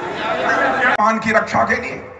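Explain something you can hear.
A man speaks forcefully into a microphone through loudspeakers.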